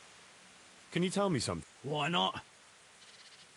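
A man asks a question calmly.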